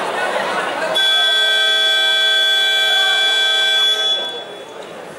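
A referee's whistle blows one long blast.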